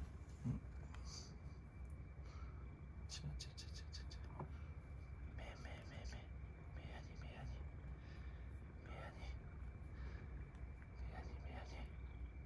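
A hand rubs and strokes a cat's fur with soft rustling.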